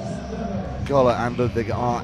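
A volleyball is struck with a hand.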